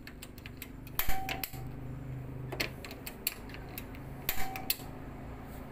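A gas stove igniter clicks sharply.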